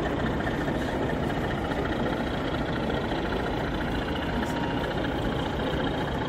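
A model train rumbles along the track and passes by.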